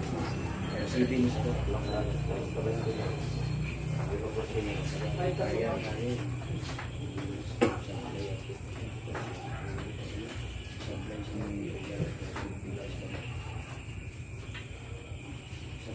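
Men talk nearby in a casual, lively way.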